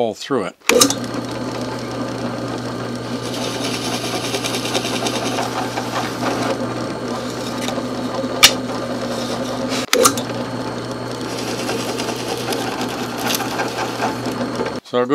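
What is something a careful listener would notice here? A drill bit bores into wood with a grinding rasp.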